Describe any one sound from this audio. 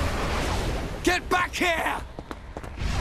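A young man shouts urgently.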